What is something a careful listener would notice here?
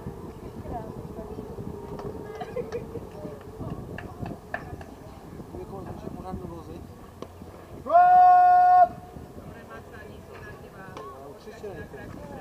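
Players call out to each other in the distance outdoors.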